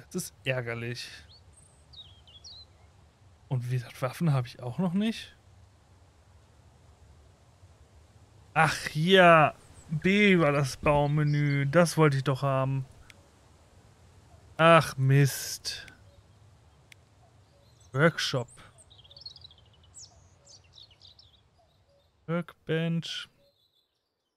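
A man talks into a close microphone in short, lively bursts.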